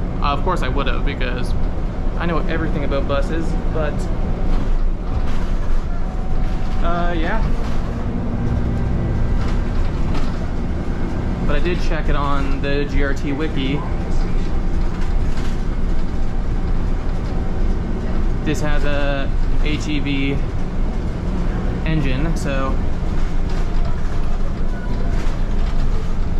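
A bus engine rumbles steadily while the bus drives.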